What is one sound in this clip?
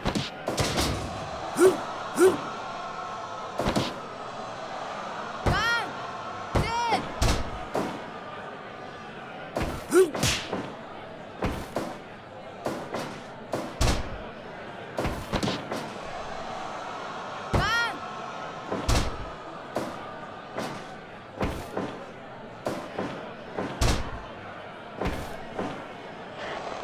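Heavy thuds of bodies slamming onto a wrestling mat ring out again and again.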